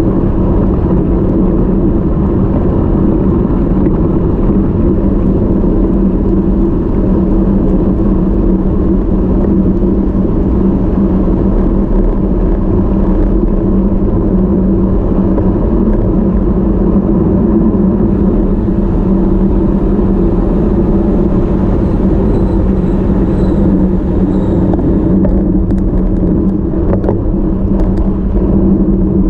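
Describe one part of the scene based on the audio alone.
Wind roars steadily across a microphone while riding fast outdoors.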